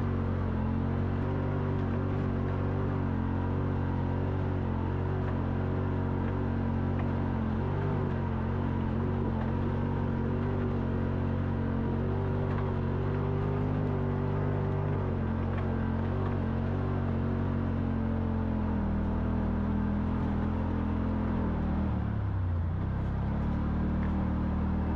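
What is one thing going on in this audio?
Tyres crunch over loose gravel and stones.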